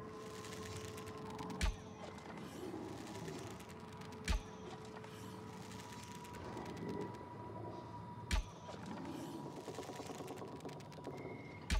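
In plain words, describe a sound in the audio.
A bowstring creaks as it is pulled back.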